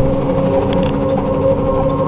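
A hovering machine hums overhead.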